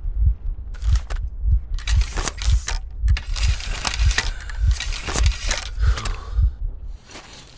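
A gun's metal parts click and clank as it is reloaded close by.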